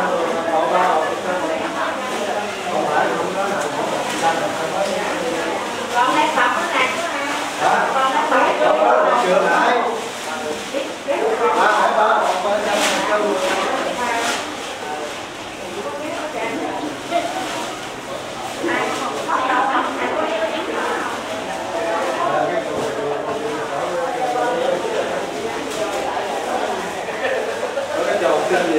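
A crowd of men and women chatters loudly indoors, with echo.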